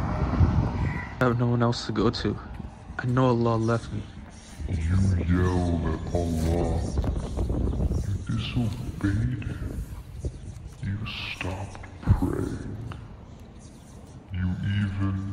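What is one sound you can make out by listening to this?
A young man speaks emotionally, close by.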